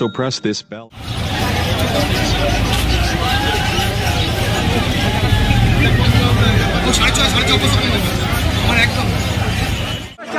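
A crowd of people chatters outdoors, with many voices at once.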